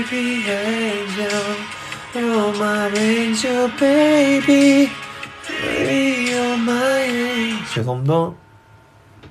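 A young man sings softly close to a microphone.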